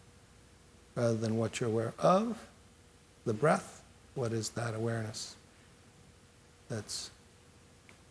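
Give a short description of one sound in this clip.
A middle-aged man speaks calmly and thoughtfully through a microphone, in short bursts with pauses.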